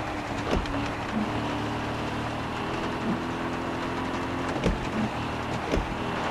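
Windscreen wipers swish back and forth.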